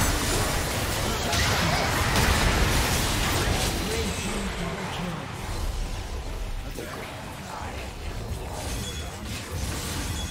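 Video game spell blasts and weapon clashes crackle and boom in a fast fight.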